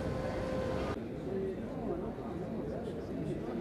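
A crowd of men and women chatter around the listener in a room.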